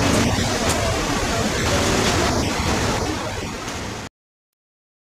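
Traffic and street bustle rumble steadily outdoors.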